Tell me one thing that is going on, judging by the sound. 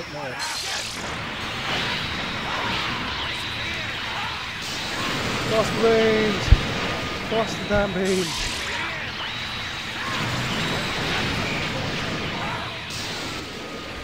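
A huge energy blast roars and crackles steadily.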